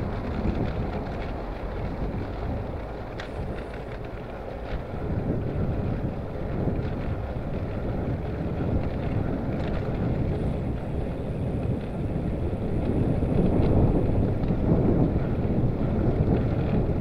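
Bicycle tyres hum on the road.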